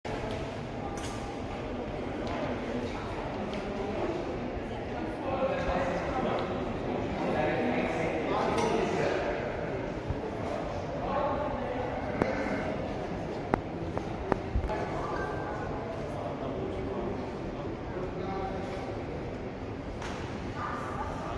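Voices murmur and echo through a large hall.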